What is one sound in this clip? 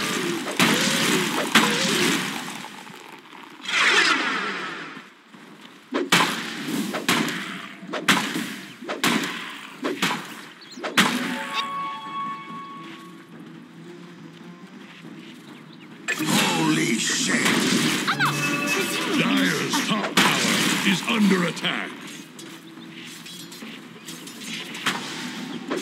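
Weapons clash and strike in a video game fight.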